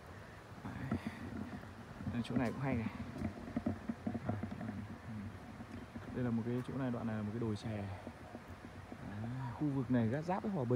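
A man talks calmly, close by, outdoors.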